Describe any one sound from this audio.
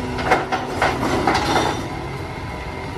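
Rubbish tumbles out of a bin into a truck.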